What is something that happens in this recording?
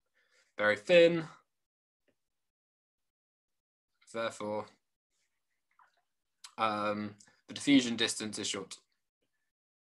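A young man speaks calmly in short phrases over an online call.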